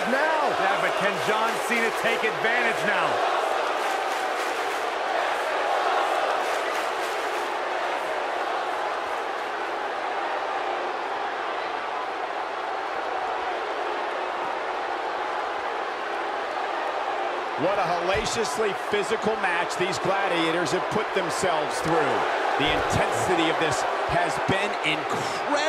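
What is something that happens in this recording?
A large crowd roars and cheers steadily.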